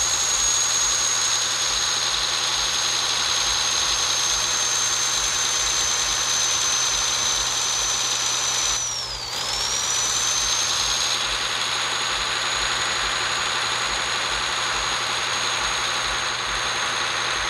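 A truck engine hums steadily as it drives along a road.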